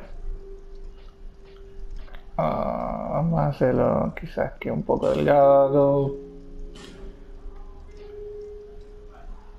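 A soft menu tone clicks as a selection changes.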